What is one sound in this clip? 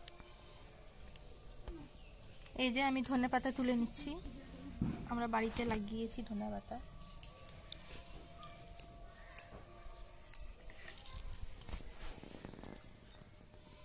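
Leafy stems snap softly as they are picked by hand.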